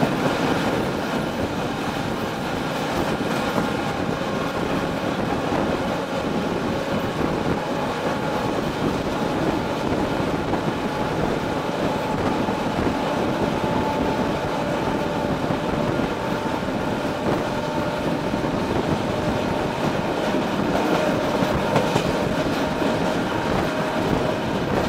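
Wind rushes past an open train window.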